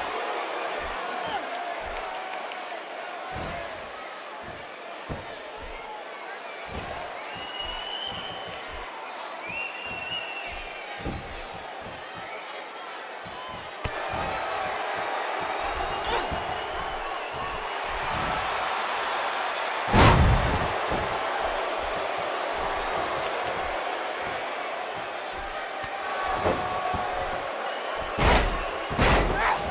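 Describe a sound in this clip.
A large crowd cheers and murmurs steadily in a big echoing arena.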